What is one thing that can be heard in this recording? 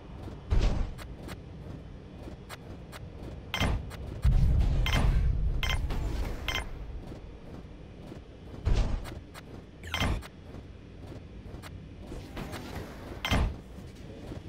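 Short interface clicks sound as buildings are placed.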